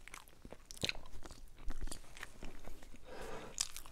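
A young man chews food noisily.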